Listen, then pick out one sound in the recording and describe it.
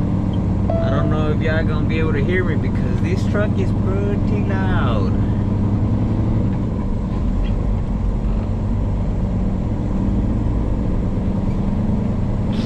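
A truck engine rumbles steadily inside the cab.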